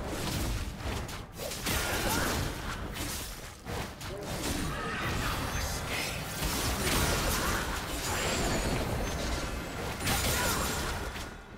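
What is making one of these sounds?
Magic blasts and weapon strikes crackle and boom in a fast fight.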